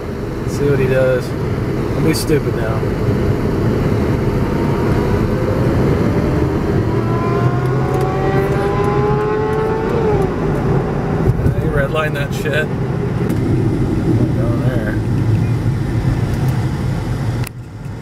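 Road noise rumbles steadily inside a moving car.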